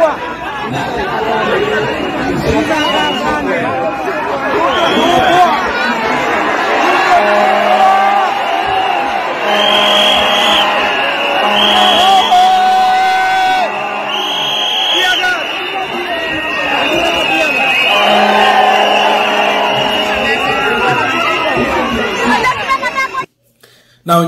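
A large crowd chants and cheers loudly outdoors.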